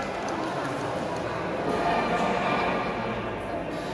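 A badminton racket smacks a shuttlecock.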